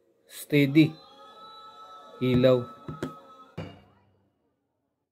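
A portable speaker plays short electronic start-up tones.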